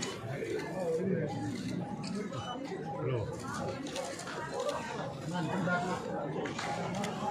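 A crowd of men and women chatter nearby in a busy room.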